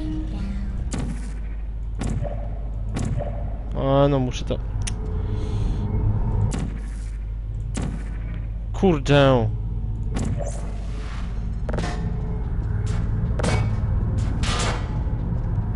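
A sci-fi gun fires repeatedly with short sharp zaps.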